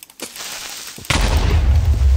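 A sword strikes a creature with a dull thud.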